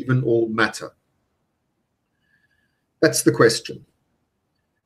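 A middle-aged man speaks calmly and close to a microphone, in short phrases with pauses.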